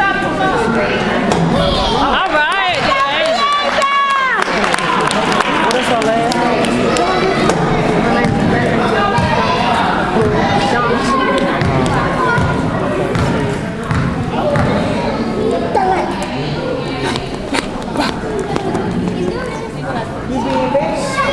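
A crowd of spectators chatters throughout in a large echoing gym.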